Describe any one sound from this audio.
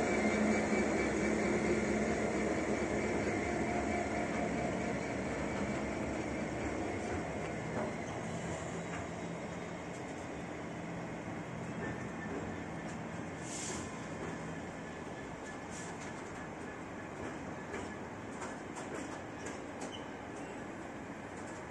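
A long freight train rumbles past on the tracks, slowly fading.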